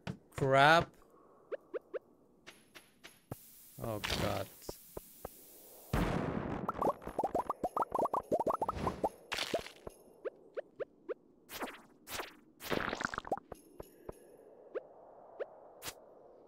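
Short game sound effects clink and chime as rocks break.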